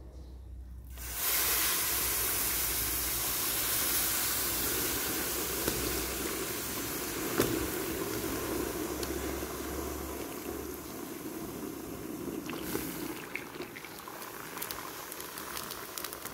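Liquid pours into a hot pan.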